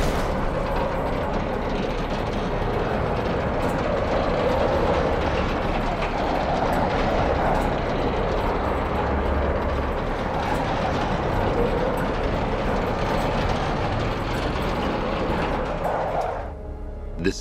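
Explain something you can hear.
A heavy vehicle engine rumbles and roars steadily.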